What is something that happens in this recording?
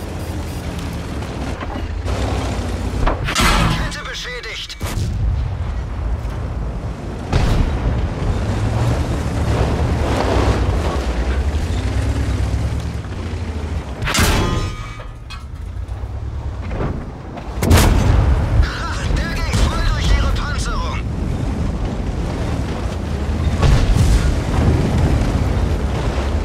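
A heavy tank engine rumbles and clanks steadily.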